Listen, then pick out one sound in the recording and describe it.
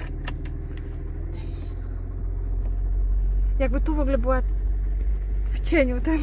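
A car engine rumbles low and steady from inside the car, growing a little louder as the car moves off.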